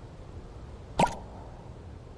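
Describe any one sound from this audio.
A short game menu sound whooshes as a panel closes.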